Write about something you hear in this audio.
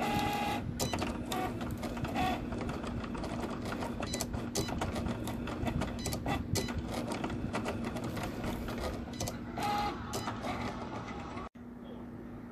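A cutting machine whirs and clicks as its blade carriage moves back and forth.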